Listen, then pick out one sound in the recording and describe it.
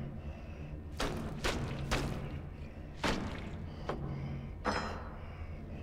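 A cleaver chops into raw meat with wet thuds.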